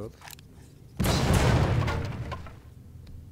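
A revolver fires a loud shot that echoes.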